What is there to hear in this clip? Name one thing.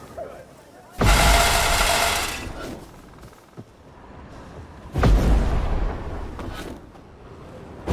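A horse gallops along a dirt path.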